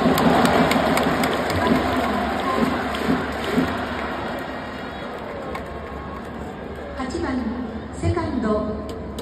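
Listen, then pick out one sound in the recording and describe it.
A large crowd murmurs and chatters in a vast echoing stadium.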